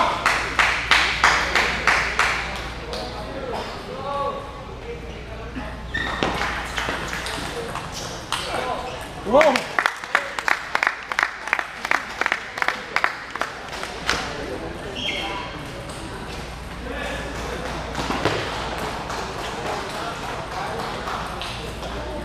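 Table tennis balls click quickly back and forth on paddles and a table in an echoing hall.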